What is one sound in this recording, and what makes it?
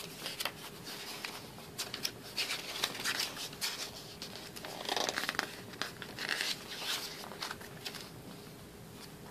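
Glossy paper pages rustle and flap as they are turned by hand.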